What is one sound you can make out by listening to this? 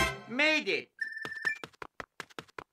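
Rapid electronic beeps tick as a game score counts up.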